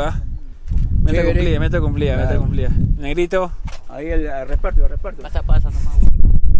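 An elderly man speaks close by with animation.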